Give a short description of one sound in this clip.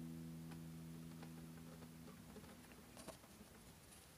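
An acoustic guitar plays a ringing chord that slowly fades.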